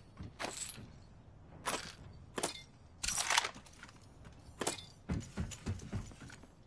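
Footsteps clank on a metal floor in a video game.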